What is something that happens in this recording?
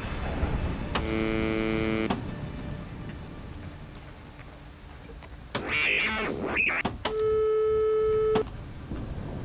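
Steady electronic tones sound from loudspeakers, switching on and off.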